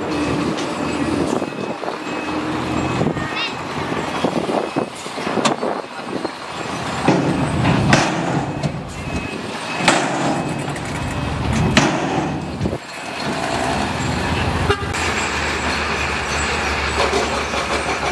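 A bulldozer engine rumbles and strains as it pushes rubble.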